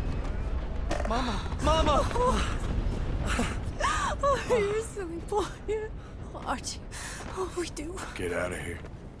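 A man speaks softly and with emotion, close by.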